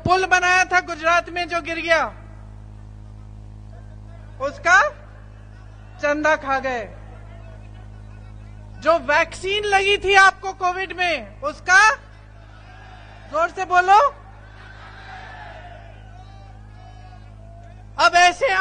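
A woman speaks forcefully through a loudspeaker, in bursts with pauses.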